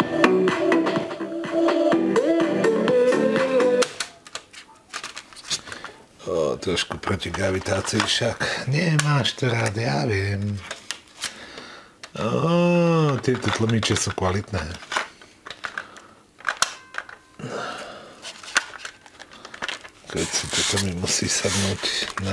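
Buttons on a cassette deck click as they are pressed.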